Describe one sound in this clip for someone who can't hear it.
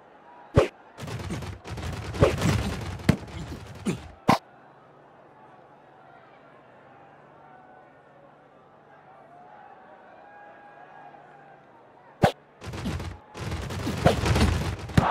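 A crowd roars and cheers in loud bursts.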